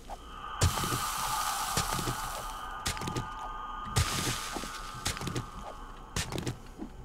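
Chunks of rock break loose and tumble with a crumbling rattle.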